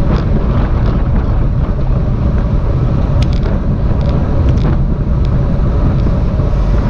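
Wind rumbles loudly across a moving bicycle.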